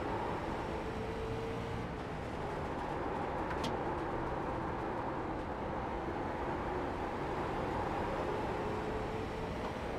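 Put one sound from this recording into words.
Tyres rumble on the track.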